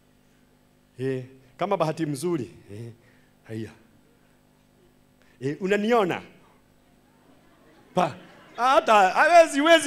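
A middle-aged man speaks with animation into a microphone, in short bursts.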